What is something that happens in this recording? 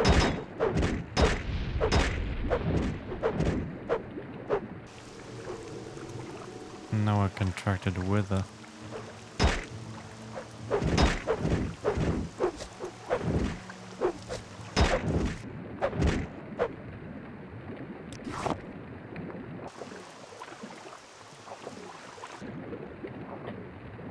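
Water sloshes and bubbles as someone swims underwater.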